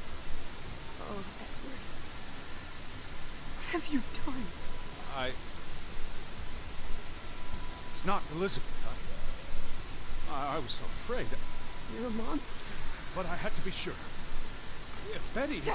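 A young woman speaks in a distressed, halting voice, close by.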